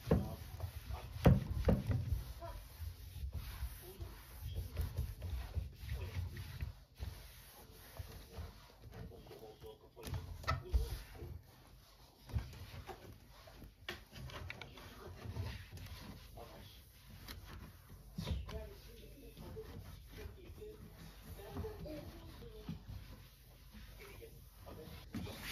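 A cloth rubs and wipes against a wooden cabinet, close by.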